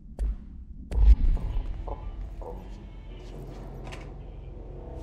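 A heavy door opens with a deep thud.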